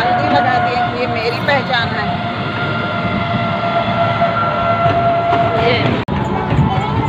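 An auto-rickshaw engine hums steadily.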